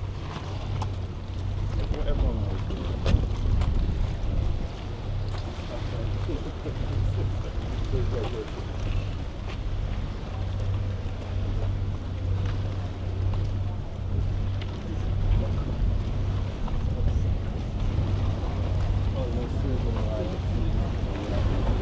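Men and women chat nearby in a crowd.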